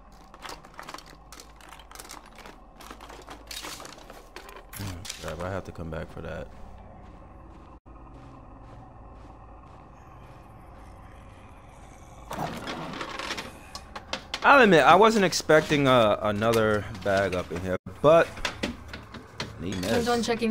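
Someone rummages through a container.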